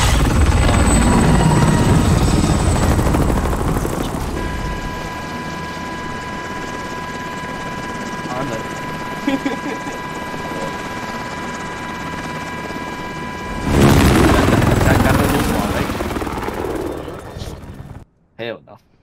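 A helicopter's rotor roars loudly close by.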